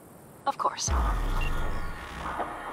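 A burst of crackling digital noise sounds.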